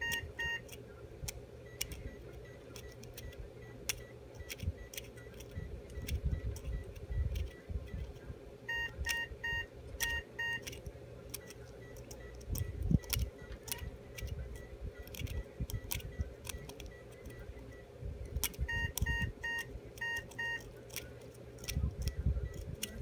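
A dental scaler hums steadily against teeth.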